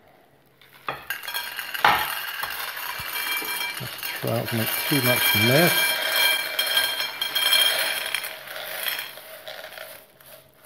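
Dry grains rattle and pour into a bowl.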